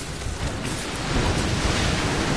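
A metal grate rattles as it is pushed.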